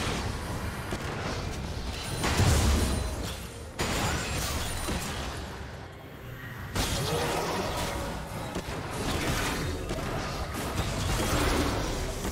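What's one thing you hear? Game weapons clash and strike.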